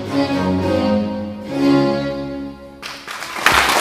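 A string ensemble plays a lively baroque piece.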